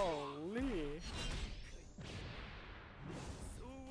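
A sword swooshes through the air.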